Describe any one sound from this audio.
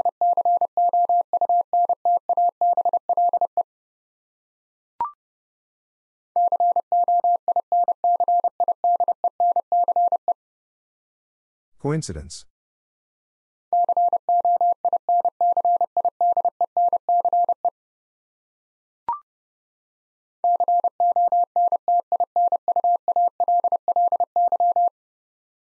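A telegraph key taps out Morse code in quick, steady beeps, with pauses between words.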